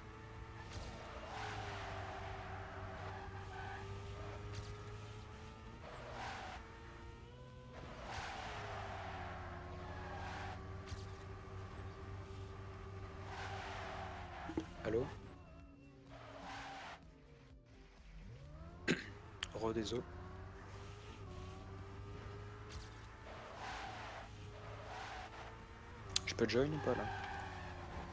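A racing car engine drones steadily, its pitch rising and falling as the car speeds up and slows.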